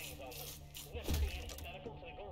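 A crossbow fires with a sharp crack.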